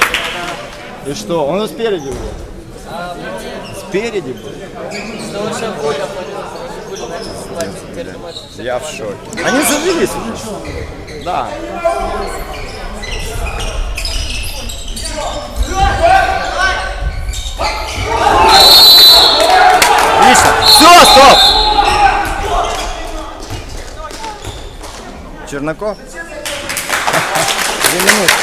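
Spectators chatter and call out nearby.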